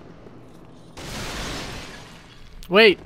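A heavy crash bursts into a rushing whoosh.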